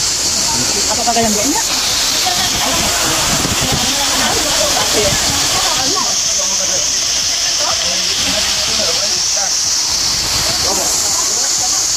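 Men and women talk and call out nearby, outdoors.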